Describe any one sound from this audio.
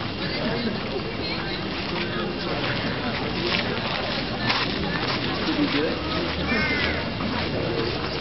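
Men and women chatter at a distance outdoors.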